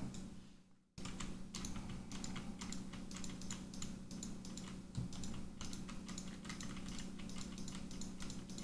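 Computer keyboard keys click rapidly and unevenly.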